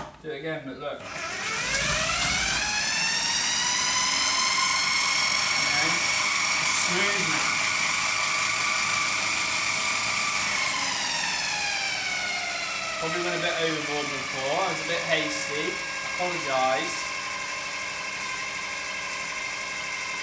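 A food processor motor whirs up to a steady high whine, then slows to a lower hum.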